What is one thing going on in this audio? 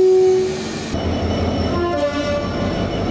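A diesel locomotive idles.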